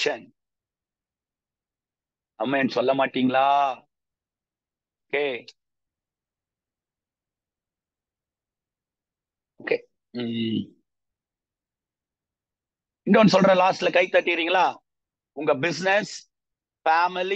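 A middle-aged man speaks calmly through an online call, with long pauses.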